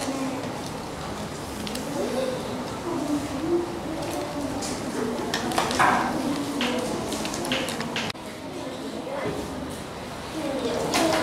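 Young children chatter and talk around the room.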